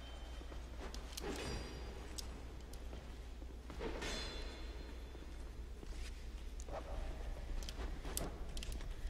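Swords clash with sharp metallic clangs.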